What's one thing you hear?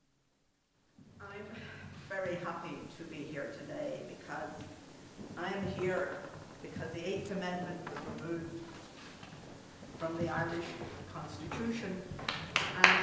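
An elderly woman speaks calmly through a headset microphone.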